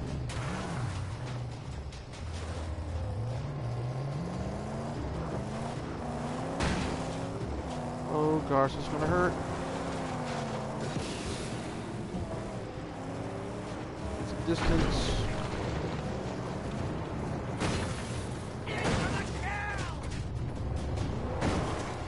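A car engine roars and revs loudly.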